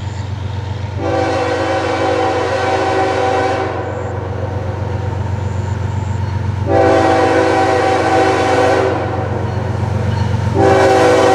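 A train horn blasts loudly in long, repeated blows.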